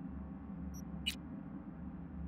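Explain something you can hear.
A short electronic swish sounds.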